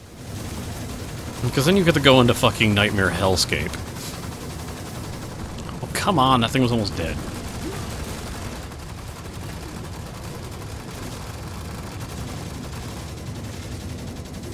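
A heavy rotary gun fires in rapid bursts.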